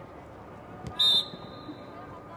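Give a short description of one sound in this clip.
A referee's whistle blows once, short and sharp.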